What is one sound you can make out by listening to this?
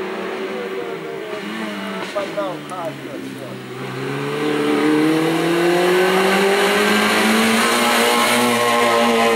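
A rally car's engine revs hard and roars closer.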